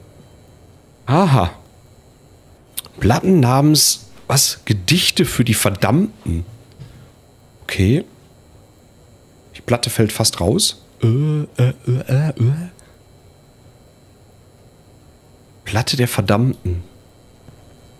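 A man talks calmly and closely into a microphone, in bursts.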